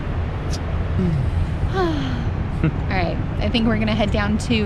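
A young woman speaks close by, calmly and with animation.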